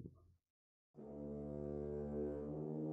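A piano plays a low sustained note.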